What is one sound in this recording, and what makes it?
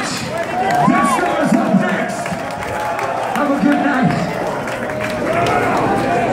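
A live rock band plays loudly in a large echoing hall.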